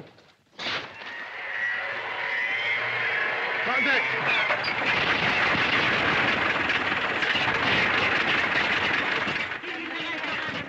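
An aircraft engine sputters and roars loudly.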